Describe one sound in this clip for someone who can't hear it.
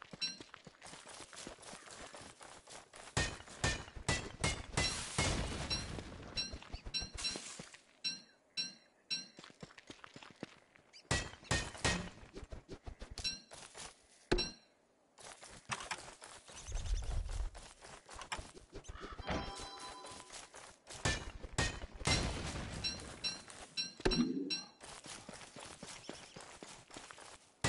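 Short game sound effects of footsteps, picking and thuds come and go.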